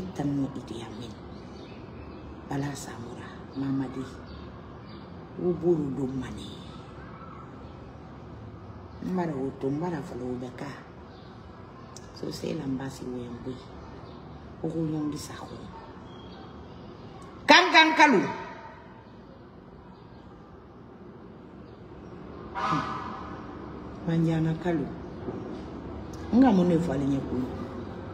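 A woman speaks emotionally in short bursts, with long pauses.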